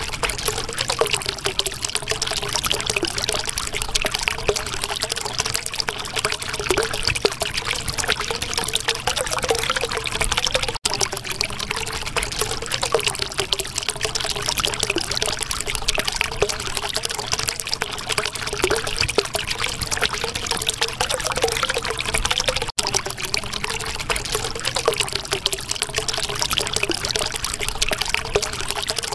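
Water bubbles and gurgles steadily.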